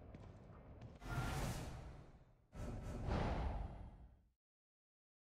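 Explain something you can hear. A soft whoosh sounds as a game menu opens.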